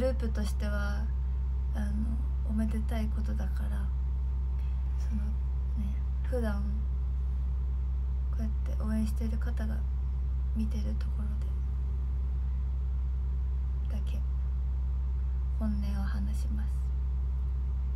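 A young woman speaks softly and calmly, close to a microphone, with pauses.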